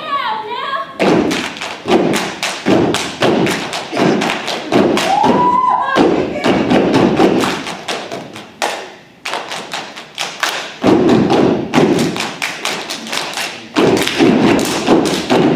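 A group of young women stomp their feet in rhythm.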